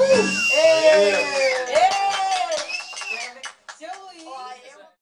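A man sings in a sustained, drawn-out voice close by.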